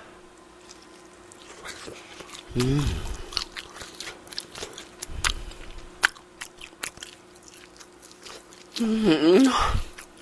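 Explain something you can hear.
A young man chews and smacks his lips loudly into a microphone.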